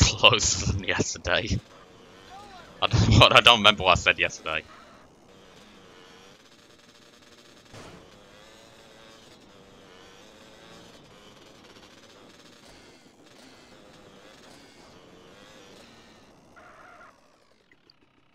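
A motorbike engine hums steadily as it rides along.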